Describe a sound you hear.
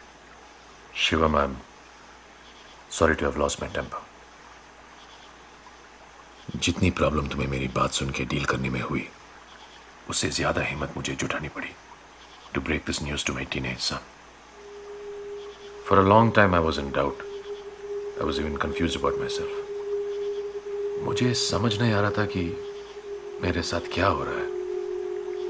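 A man speaks quietly and seriously nearby.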